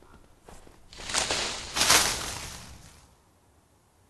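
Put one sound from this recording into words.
Leafy branches rustle and shake loudly.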